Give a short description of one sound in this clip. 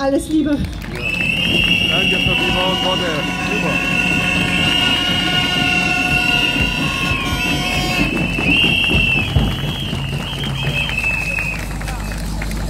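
A woman sings loudly through a loudspeaker outdoors.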